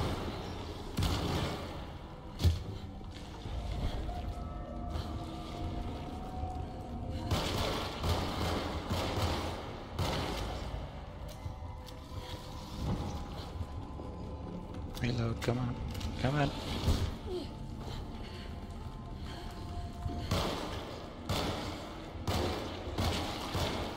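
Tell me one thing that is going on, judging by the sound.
A handgun fires sharp shots.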